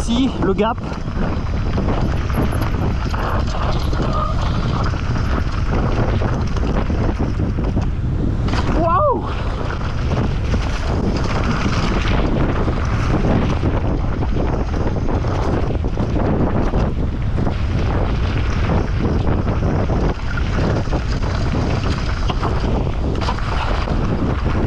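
Bicycle tyres crunch and skid over loose gravel.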